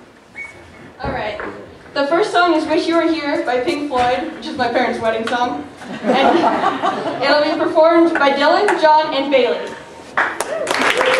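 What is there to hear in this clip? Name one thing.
A young woman speaks animatedly into a microphone.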